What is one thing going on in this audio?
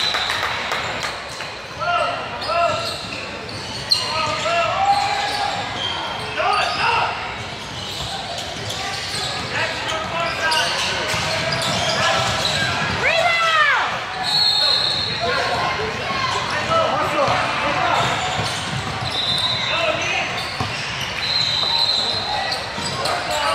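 Young players and spectators shout and call out in a large echoing gym.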